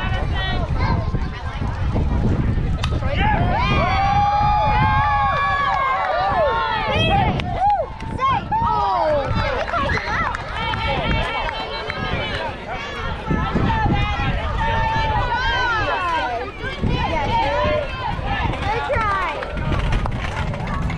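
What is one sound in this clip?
Young girls shout and cheer from a distance.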